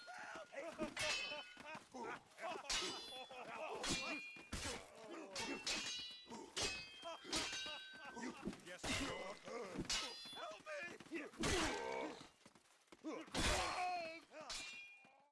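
Swords clash and ring with metallic clangs.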